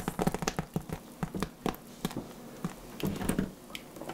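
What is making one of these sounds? A squeeze bottle squirts liquid onto wet hair.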